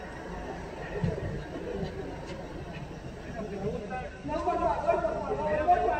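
A man shouts out in distress from a distance outdoors.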